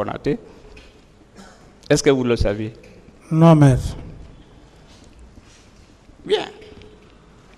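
A middle-aged man speaks slowly into a microphone, in a room with a slight echo.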